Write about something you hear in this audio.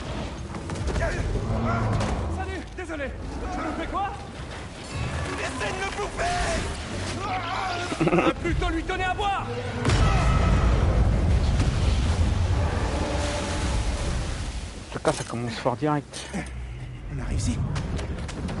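A young man speaks with a joking tone.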